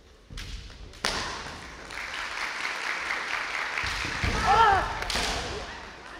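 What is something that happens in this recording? A fencer shouts loudly in a large echoing hall.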